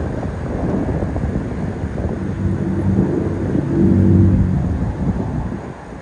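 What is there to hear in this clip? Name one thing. An airplane drones far overhead.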